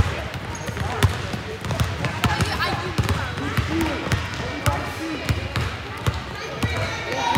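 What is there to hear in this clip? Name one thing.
A basketball bounces on a wooden floor in a large echoing gym.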